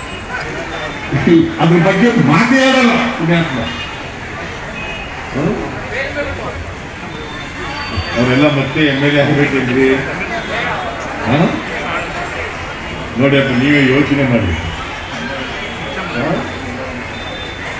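An elderly man speaks forcefully through a microphone and loudspeakers outdoors.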